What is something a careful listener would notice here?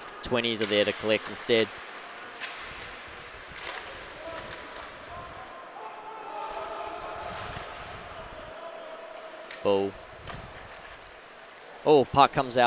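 Skates scrape across the ice of a large echoing rink.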